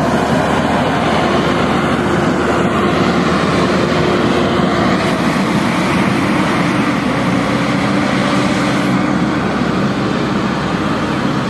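A wheel loader's diesel engine rumbles steadily close by and slowly moves away.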